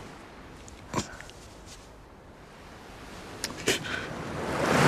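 A young woman sobs quietly.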